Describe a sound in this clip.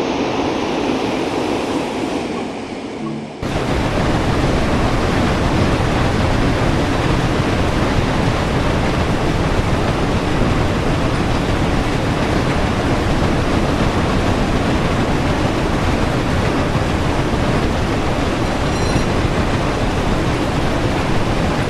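A steam locomotive rumbles and hisses steadily while running along the track.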